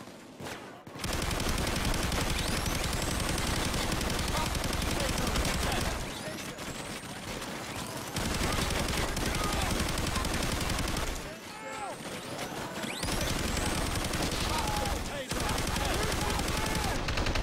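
Automatic guns fire in rapid, loud bursts.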